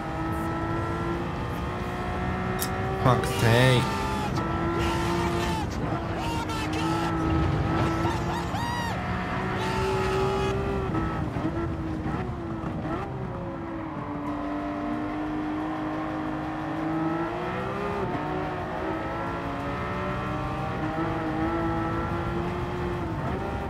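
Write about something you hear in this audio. A racing car engine drones steadily, rising and falling in pitch as it shifts gears.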